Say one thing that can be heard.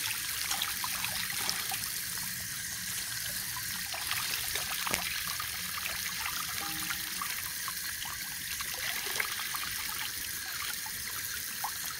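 Water splashes as hands scrub meat in a basin.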